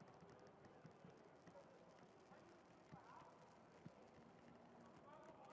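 Horses' hooves pound on a dirt track in the distance.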